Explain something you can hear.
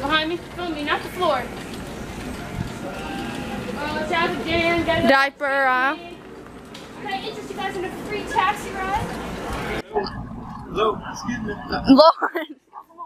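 A child's bike rattles and its small tyres roll across a hard floor.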